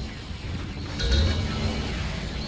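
A locked door sounds a sharp electronic buzz.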